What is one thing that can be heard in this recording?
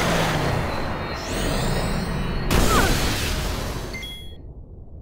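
A thunder spell crackles and booms.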